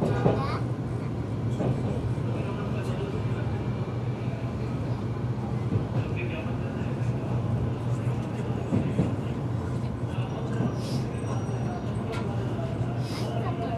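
A crowd murmurs in a large echoing station.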